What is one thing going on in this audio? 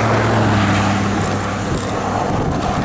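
A pickup truck drives away ahead.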